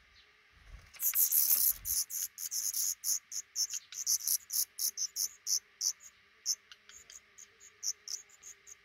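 Baby birds chirp and squeak loudly and rapidly, close by.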